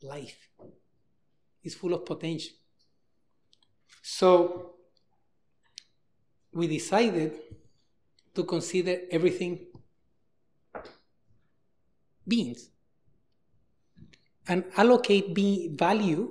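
A man lectures calmly through a microphone in a large echoing hall.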